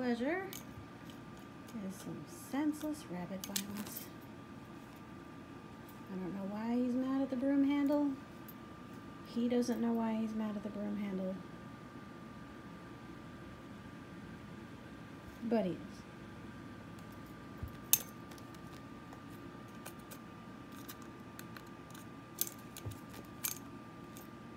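A rabbit gnaws and nibbles at a plastic stick with small clicks.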